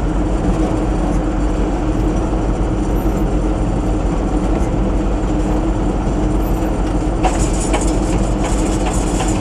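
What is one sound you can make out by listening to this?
A tractor engine rumbles steadily inside a cab.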